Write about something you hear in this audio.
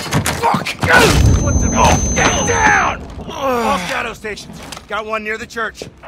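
Bodies thud and scuffle in a struggle.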